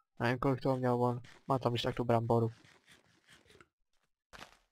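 Crunchy chewing sounds of a game character eating repeat quickly.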